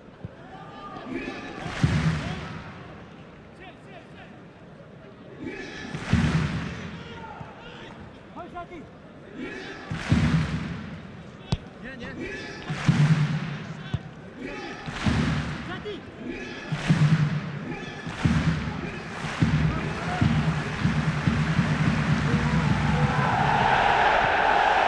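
A large stadium crowd chants and roars in waves, outdoors.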